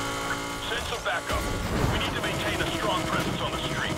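Exhaust pops and bangs crackle from a car.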